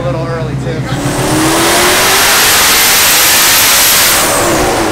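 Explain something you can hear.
A supercharger whines, rising in pitch.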